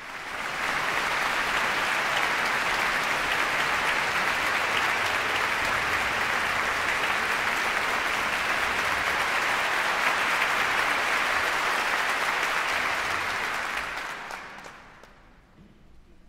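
A large audience applauds steadily in a big echoing hall, then the applause dies away.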